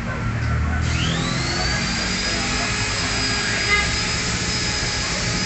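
A machine motor whirs up to a steady high whine.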